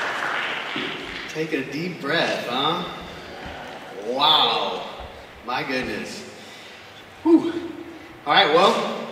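A man speaks with animation into a microphone over a loudspeaker in an echoing room.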